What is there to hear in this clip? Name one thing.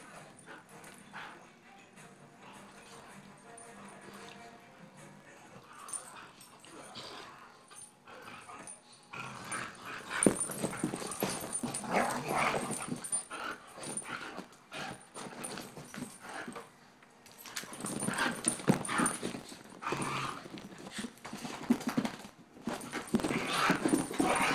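Small dogs growl and snarl as they play-fight.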